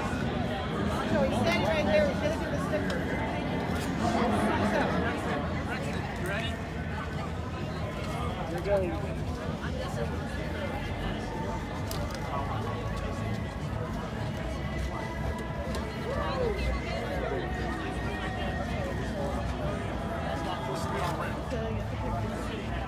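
A crowd of men and women chatter and call out in an open outdoor space.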